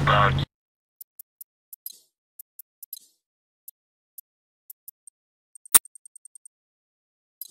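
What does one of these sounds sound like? Menu clicks tick in quick succession.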